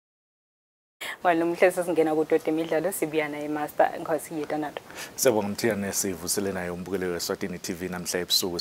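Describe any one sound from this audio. A woman speaks clearly and steadily, as if reading the news.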